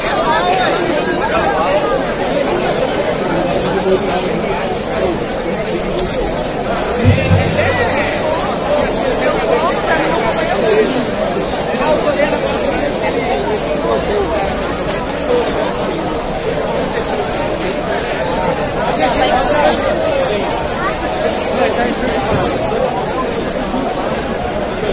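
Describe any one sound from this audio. A large crowd talks and chatters loudly outdoors.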